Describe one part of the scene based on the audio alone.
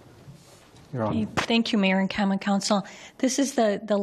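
A woman speaks calmly into a microphone over a loudspeaker system in an echoing room.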